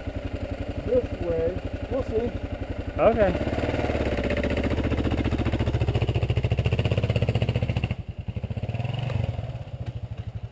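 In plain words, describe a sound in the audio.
A motorcycle engine putters at idle close by.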